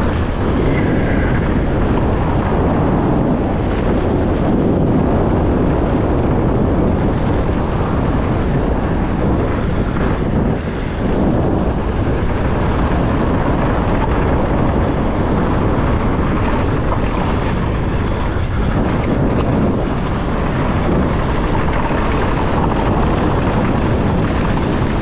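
Strong wind rushes against the microphone.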